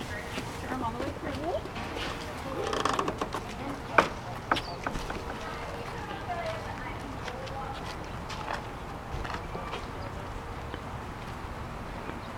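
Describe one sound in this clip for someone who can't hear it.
A toddler's small footsteps patter on hard ground.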